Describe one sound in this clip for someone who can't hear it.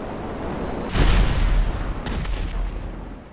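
An explosion booms with a loud crack.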